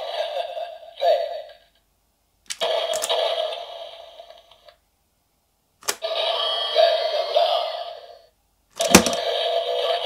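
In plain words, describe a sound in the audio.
A plastic toy part clicks sharply as it is turned.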